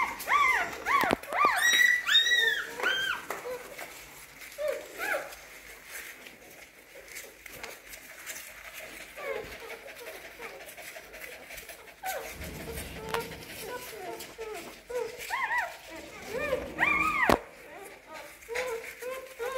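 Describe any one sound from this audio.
Newborn puppies squeak and whine in high, thin cries.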